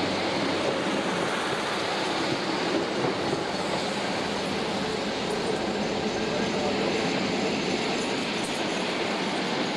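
A freight train's wagons rumble along the tracks.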